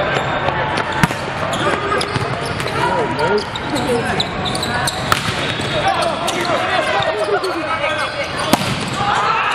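A volleyball is struck with sharp smacks in a large echoing hall.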